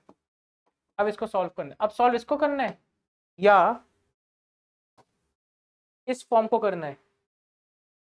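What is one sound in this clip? A man speaks clearly into a close microphone, explaining with animation.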